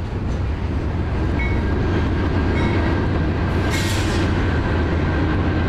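A long freight train rumbles steadily past, close by.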